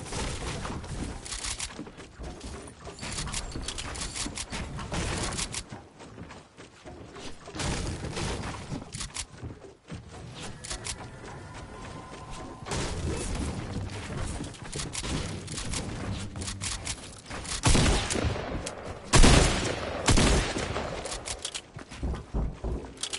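Wooden walls are built with quick clattering thuds.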